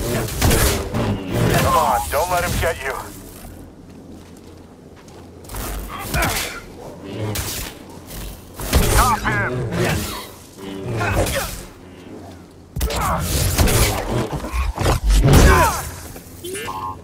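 Energy blades clash and crackle in a fast fight.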